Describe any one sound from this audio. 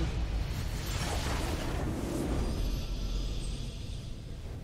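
A game's victory fanfare sounds with a loud magical burst.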